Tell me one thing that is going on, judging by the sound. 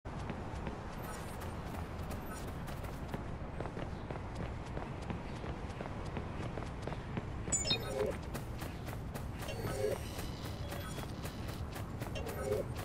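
Footsteps run quickly over pavement and grass.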